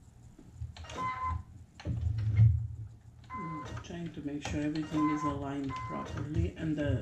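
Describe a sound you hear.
A sewing machine gives short electronic beeps.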